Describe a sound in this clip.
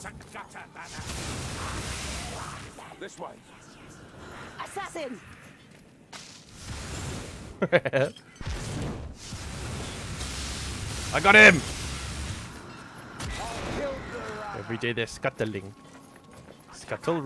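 A fire staff shoots roaring, crackling blasts of flame.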